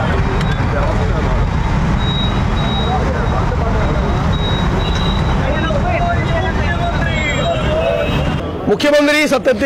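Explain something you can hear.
A crowd of men chants slogans outdoors.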